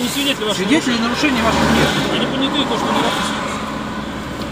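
A man speaks nearby, heard from inside a car.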